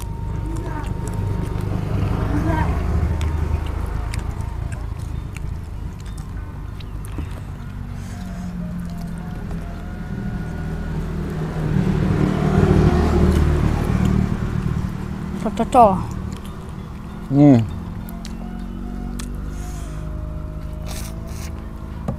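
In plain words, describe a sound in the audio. Two young men chew and smack their lips loudly, close to the microphone.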